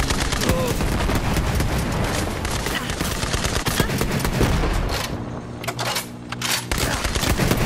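Rapid gunfire blasts loudly and close.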